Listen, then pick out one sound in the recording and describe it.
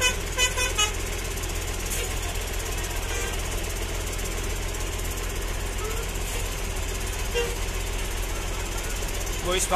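Bus engines idle with a steady low rumble nearby.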